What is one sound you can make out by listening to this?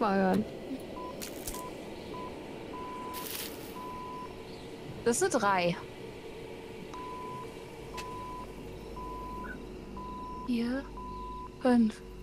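A radio set gives off short, evenly spaced beeps.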